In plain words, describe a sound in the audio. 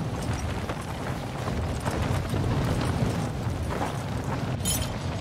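Wind rushes steadily with a low roar.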